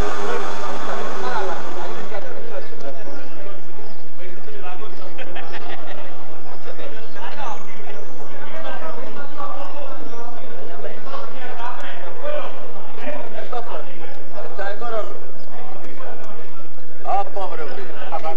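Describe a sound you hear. A crowd of men chatters outdoors.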